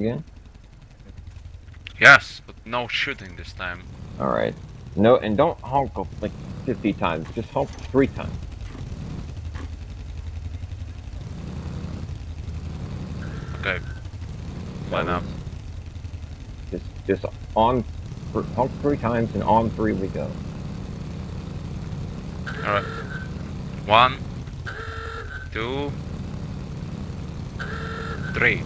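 A motorcycle engine rumbles steadily at idle.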